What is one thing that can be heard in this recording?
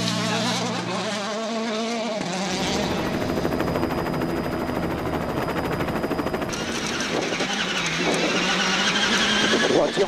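A rally car engine roars and revs as the car speeds past.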